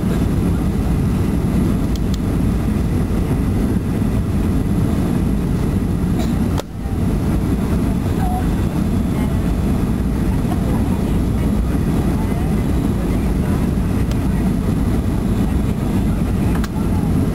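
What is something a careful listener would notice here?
Jet engines roar steadily inside an airliner cabin.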